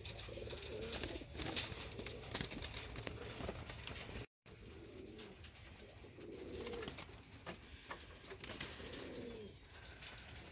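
Pigeons coo softly and continuously.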